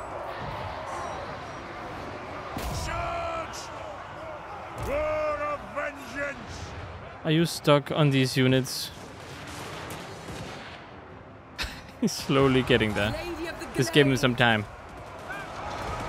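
A battle rumbles in the distance with clashing weapons.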